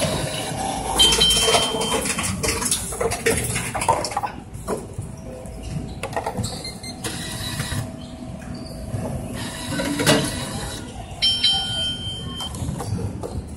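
A machine beeps with a steady high tone.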